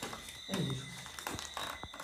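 Footsteps crunch over scattered paper and debris.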